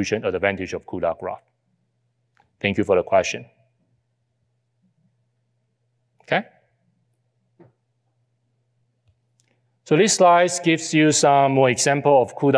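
A man speaks calmly into a close microphone, with pauses.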